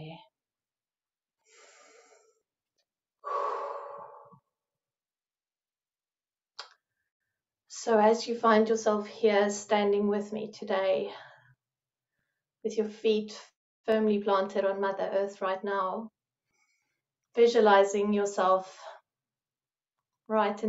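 A middle-aged woman speaks slowly and calmly into a microphone, with long pauses.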